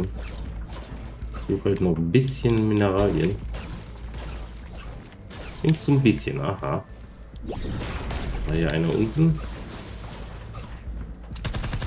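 A video game weapon strikes with sharp electric zaps.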